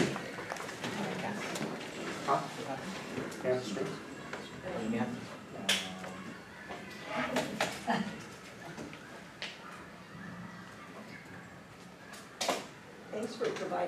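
A middle-aged man speaks calmly from a lectern.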